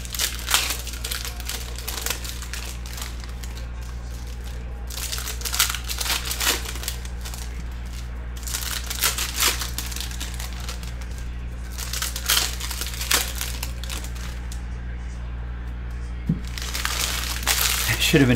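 Trading cards rustle and tap as they are handled and stacked.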